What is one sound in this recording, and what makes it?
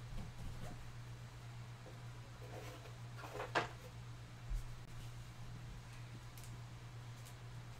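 Trading cards rustle and flick between fingers.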